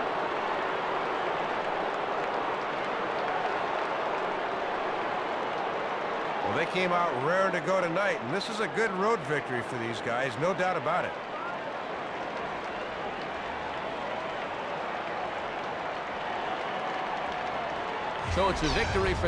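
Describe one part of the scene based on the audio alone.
A stadium crowd cheers.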